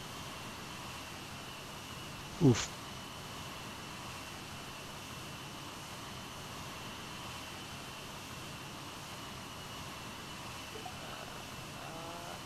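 A helicopter engine whines steadily close by.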